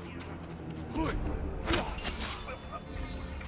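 A sword slashes with a sharp swish and thud.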